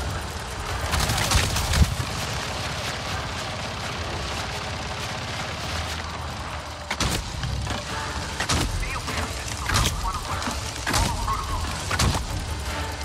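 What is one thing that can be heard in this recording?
Gunfire cracks in sharp bursts from a video game.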